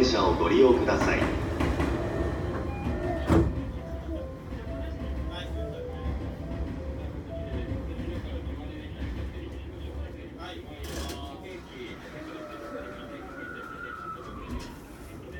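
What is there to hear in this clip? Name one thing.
A train's motors hum low and steady while it stands still.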